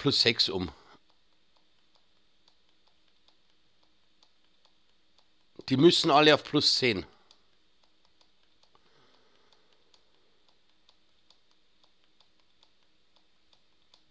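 Soft menu clicks tick repeatedly as a list scrolls.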